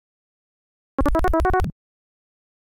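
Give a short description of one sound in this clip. A short electronic jingle chimes.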